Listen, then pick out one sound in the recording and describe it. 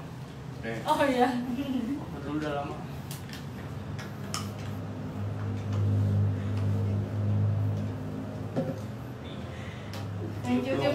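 A young man speaks softly close by.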